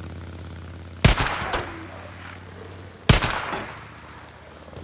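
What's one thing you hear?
A shotgun fires twice with a loud boom.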